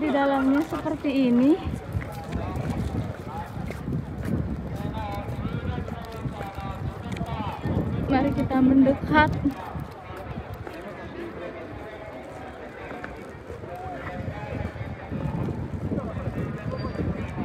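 A crowd of people talks in the background outdoors.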